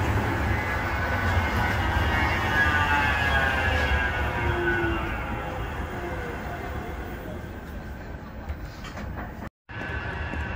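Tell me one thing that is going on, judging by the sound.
A tram pulls away with an electric whine that slowly falls in pitch.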